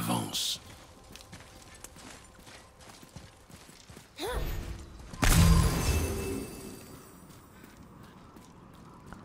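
Heavy footsteps crunch on snow and dirt.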